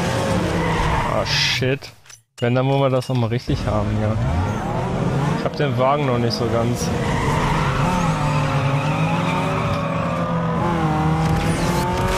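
A race car engine revs and roars as the car speeds up.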